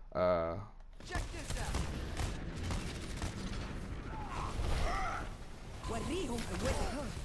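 Weapons fire in rapid bursts amid loud battle noise.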